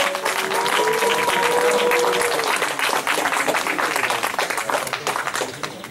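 An outdoor audience claps and applauds, fading slightly toward the end.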